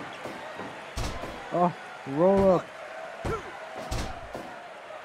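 A referee slaps the wrestling mat to count a pin.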